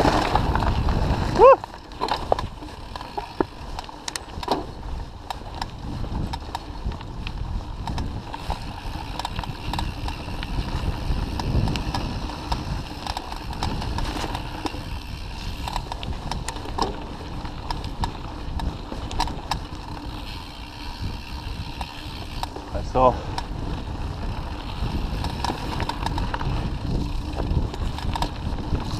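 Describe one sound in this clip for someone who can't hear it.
Bicycle tyres rumble over a rough dirt trail.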